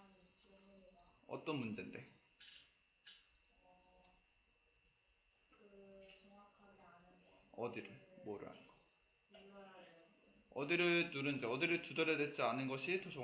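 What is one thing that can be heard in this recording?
A young man speaks calmly and explains close to a microphone.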